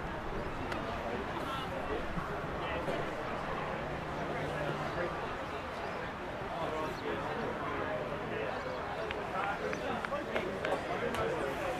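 Male football players shout and call to each other across an open field.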